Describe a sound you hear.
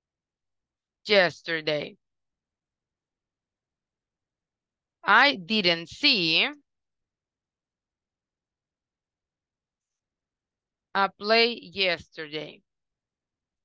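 A woman speaks clearly in short phrases over an online call.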